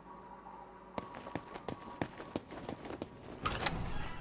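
Footsteps thud on a gritty floor.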